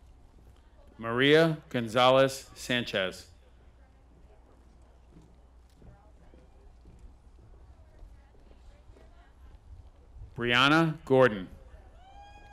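A man announces names through a loudspeaker outdoors, with a slight echo.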